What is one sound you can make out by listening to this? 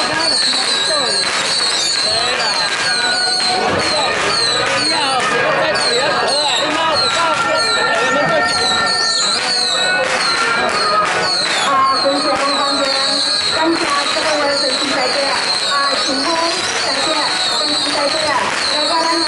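Firecrackers crackle and pop nearby.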